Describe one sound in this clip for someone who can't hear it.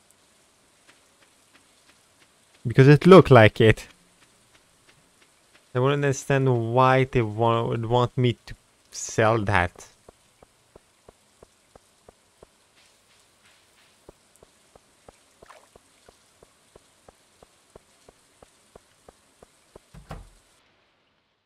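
Footsteps tap steadily on a hard path.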